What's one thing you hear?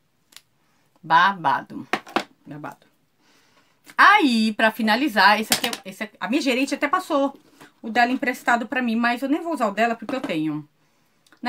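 A woman talks calmly and close by.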